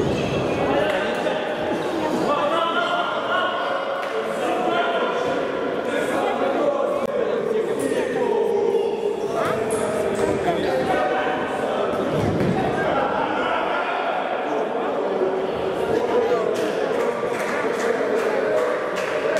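A futsal ball is kicked across the court.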